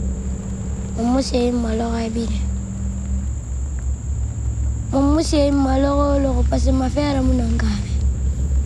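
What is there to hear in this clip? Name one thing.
A young girl speaks slowly and quietly, close by.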